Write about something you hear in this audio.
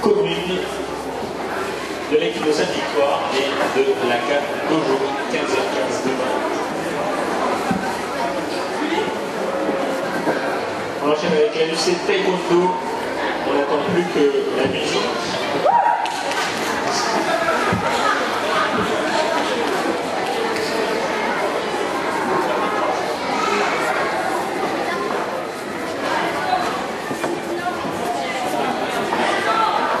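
A man speaks calmly into a microphone, heard over loudspeakers in an echoing hall.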